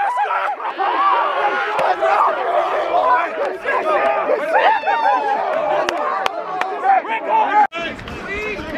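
Young men cheer and shout excitedly close by.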